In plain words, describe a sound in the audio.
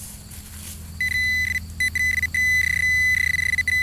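A metal detector probe beeps with a steady high tone that pulses on and off.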